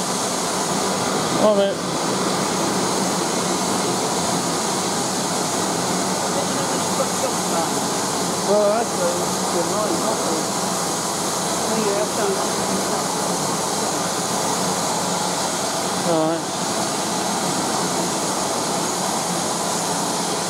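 A steam locomotive hisses steadily while standing in a large echoing hall.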